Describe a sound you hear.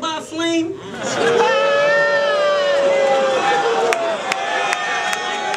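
A crowd cheers and hollers in a large hall.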